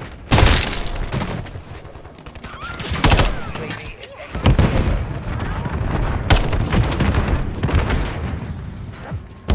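Rapid gunfire bursts out in loud volleys.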